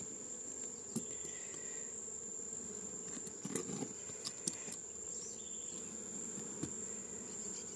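A metal tool knocks and scrapes against wooden boards.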